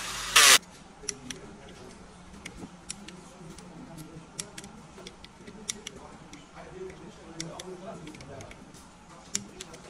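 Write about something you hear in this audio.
A metal tool clicks and taps against an aluminium engine block.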